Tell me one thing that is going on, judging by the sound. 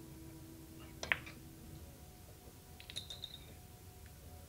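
Billiard balls click against each other and the cushions.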